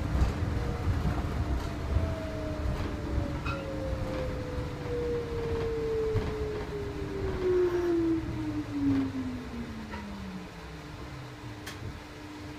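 A train's electric motor whines, falling in pitch as the train slows down.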